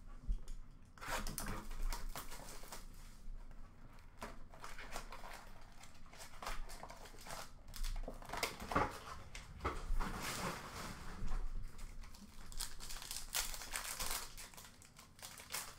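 Plastic-wrapped cards rustle and clack as hands sort through them in a plastic bin.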